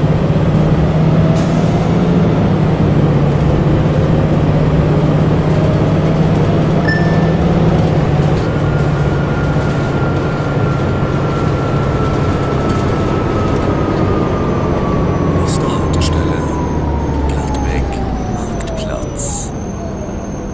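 A diesel city bus engine drones as the bus drives along.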